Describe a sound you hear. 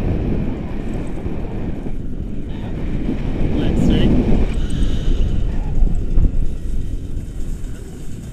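Wind buffets the microphone outdoors with a low rumble.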